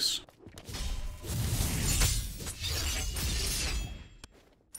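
Weapons clash and strike in a fast game fight.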